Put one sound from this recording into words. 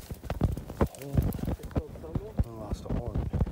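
A hand rubs and rustles over an animal's coarse fur.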